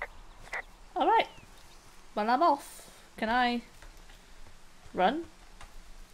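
A young woman talks with animation close to a microphone.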